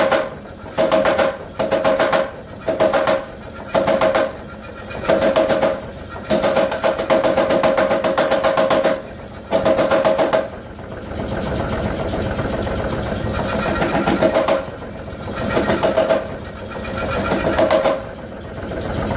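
A power hammer pounds metal in rapid bursts of heavy blows.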